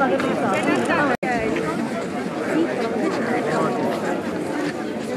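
A large crowd of men and women sings together close by.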